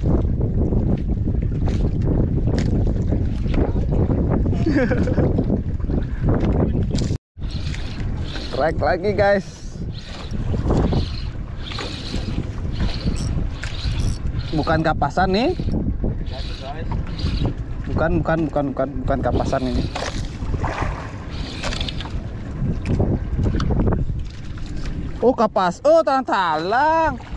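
Waves slap against a small boat's hull.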